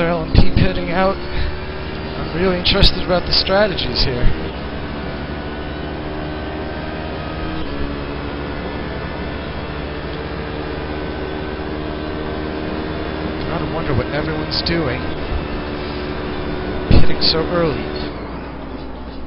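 A race car engine roars steadily, shifting pitch as it speeds up and slows down.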